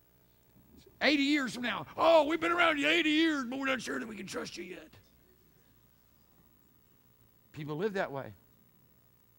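A middle-aged man speaks with animation through a microphone in a large hall.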